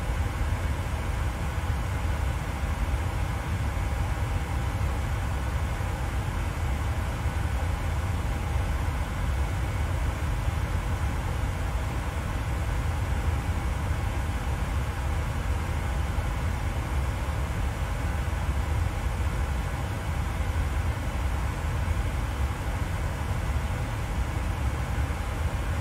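Jet engines drone with a steady low rumble.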